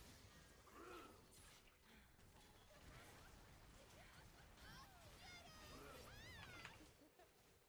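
Game spells crackle and burst with sharp electronic effects.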